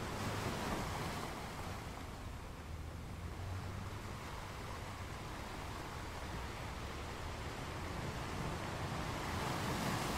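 Ocean waves roll in and crash against rocks.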